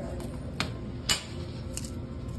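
A gumball drops and rattles into the metal chute.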